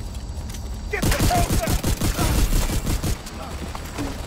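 A grenade explodes with a heavy boom.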